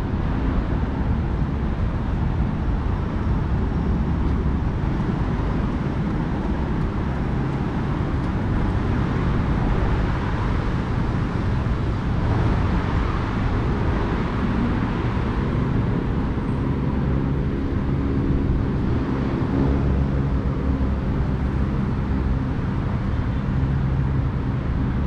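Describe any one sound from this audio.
Wind rushes and rumbles against the microphone while moving outdoors.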